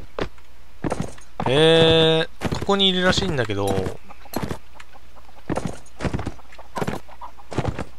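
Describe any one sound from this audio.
A horse's hooves thud steadily on a dirt path.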